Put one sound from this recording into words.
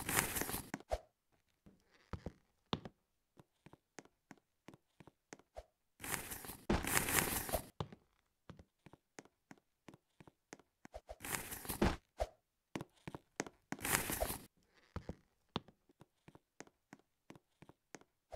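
Quick footsteps patter on a hard floor.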